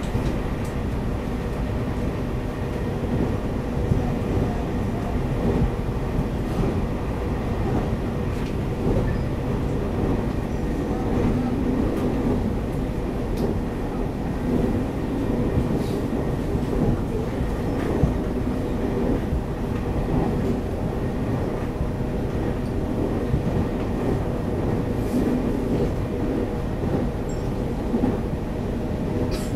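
An electric multiple-unit train rumbles along at speed, heard from inside the carriage.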